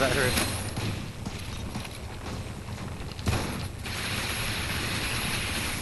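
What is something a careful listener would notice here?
A sci-fi energy gun fires with crackling zaps.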